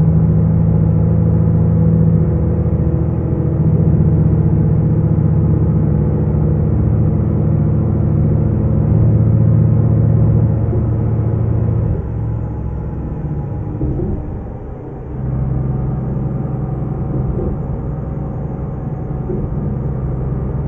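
A diesel truck engine drones while cruising on a highway, heard from inside the cab.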